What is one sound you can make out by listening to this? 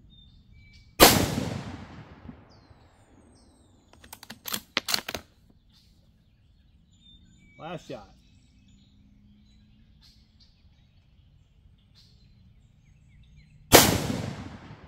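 A rifle fires a single loud shot outdoors.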